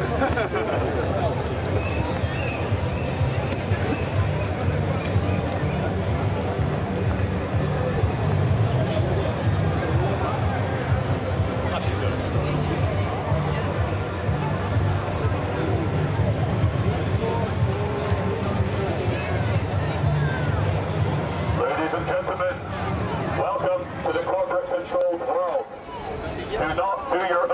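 A crowd chatters outdoors in a busy open space.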